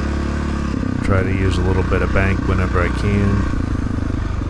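A dirt bike engine revs up sharply several times.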